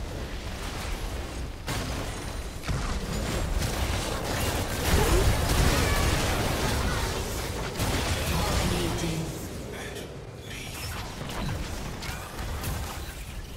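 Magic blasts and weapon strikes crackle and boom in a busy fight.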